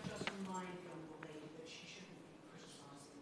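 A middle-aged woman speaks calmly through a microphone in a large room.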